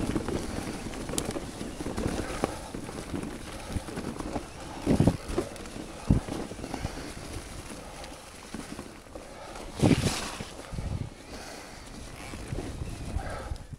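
Bike tyres roll and crunch over a rough dirt trail.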